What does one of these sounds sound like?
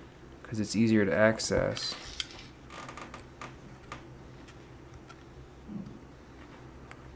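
A screwdriver clicks and scrapes as it turns a small screw into plastic.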